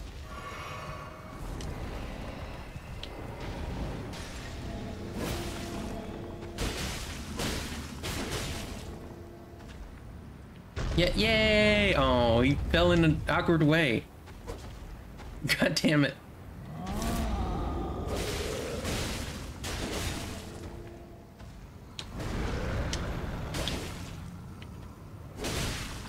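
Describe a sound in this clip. Heavy blows thud and slash repeatedly.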